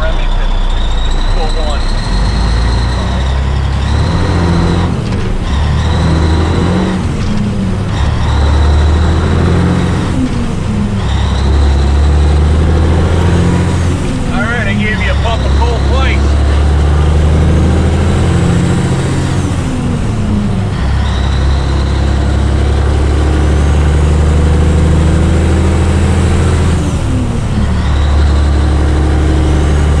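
A big diesel truck engine roars loudly as it pulls away.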